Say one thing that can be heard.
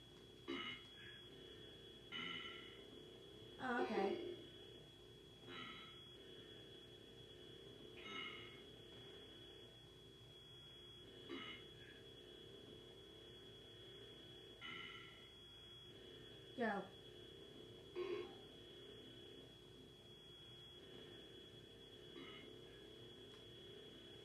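A steady high electronic whine comes from a television.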